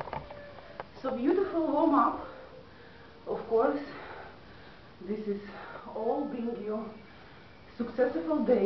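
A young woman talks close by, casually.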